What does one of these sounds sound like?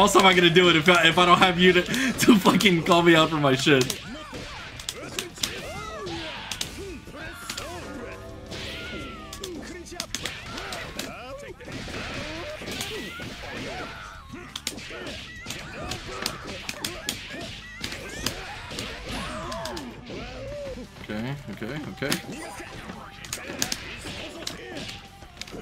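Punches and kicks land with sharp, rapid thuds.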